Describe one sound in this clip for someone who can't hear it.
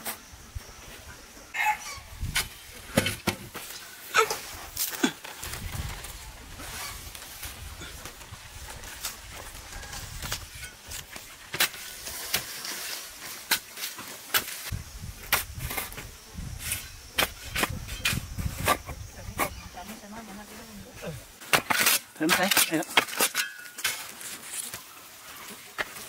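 A shovel scrapes and digs into dry dirt.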